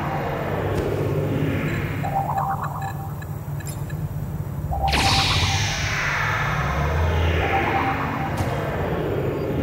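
A green beam from a game hums and zaps.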